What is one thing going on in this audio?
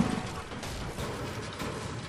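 A pickaxe swings and strikes a wall with a dull thud.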